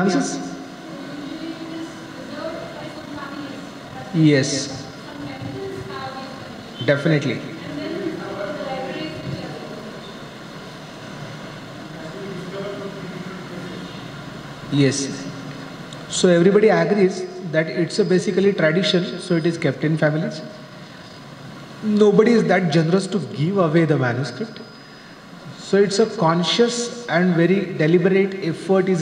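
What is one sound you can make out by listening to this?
A man speaks calmly through a microphone and loudspeaker in an echoing room.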